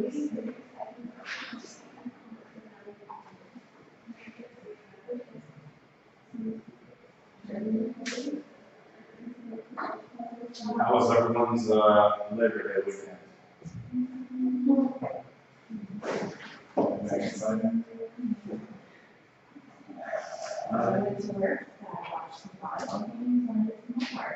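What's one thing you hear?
A man lectures at the front of a large room, his voice distant and echoing.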